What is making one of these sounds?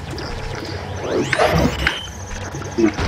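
A video game plays a rising whooshing sound effect.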